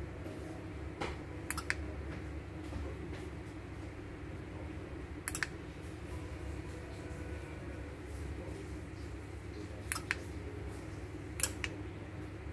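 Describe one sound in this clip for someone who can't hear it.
Buttons on a small remote control click now and then.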